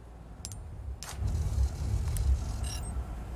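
A card slides into a reader with a click.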